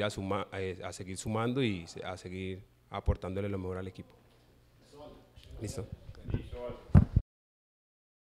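A young man speaks calmly into microphones, close by.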